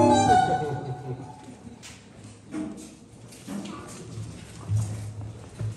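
A violin plays a melody up close.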